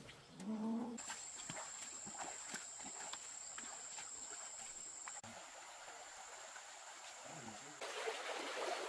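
A shallow stream trickles over stones.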